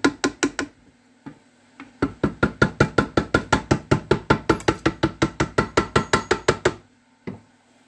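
A ratchet wrench clicks rapidly and steadily.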